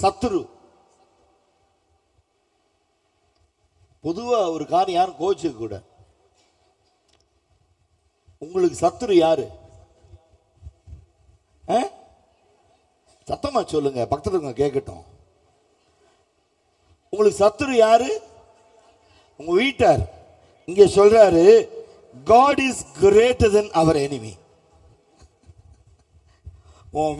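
A man preaches with animation through a microphone, in bursts with pauses.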